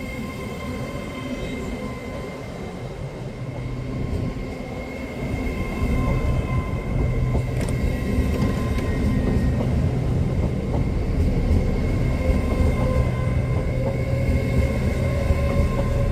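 A passenger train rolls past close by with a low rumble that grows louder.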